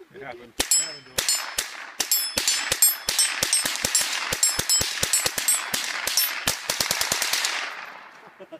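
Rifles fire rapid, sharp shots that ring out outdoors.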